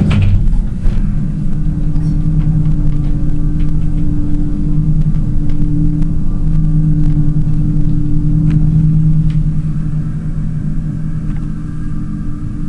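An elevator motor hums steadily as the car rises.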